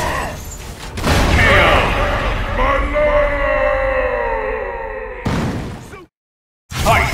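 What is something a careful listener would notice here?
A heavy blow lands with a booming crash and a long ringing echo.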